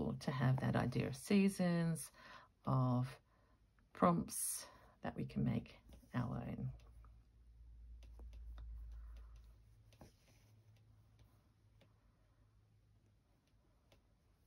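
Cloth rustles softly as hands handle it.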